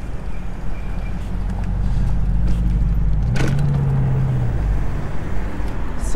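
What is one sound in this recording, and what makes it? A car drives past close by.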